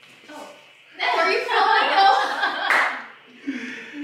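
A woman laughs and talks.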